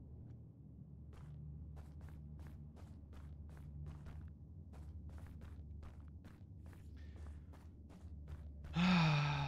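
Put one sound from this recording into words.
Quick light footsteps tap along a hard floor.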